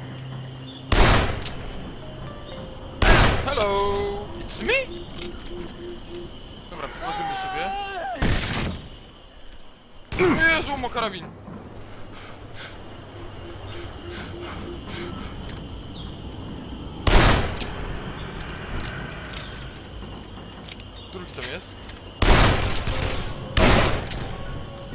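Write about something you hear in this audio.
Loud gunshots ring out one at a time.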